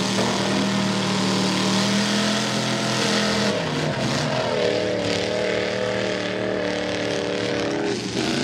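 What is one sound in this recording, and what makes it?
An engine roars and revs loudly.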